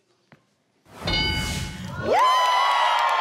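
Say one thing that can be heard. A game board chimes as an answer is revealed.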